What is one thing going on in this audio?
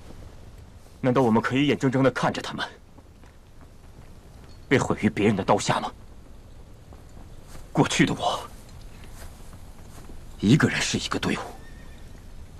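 A young man speaks forcefully, close by.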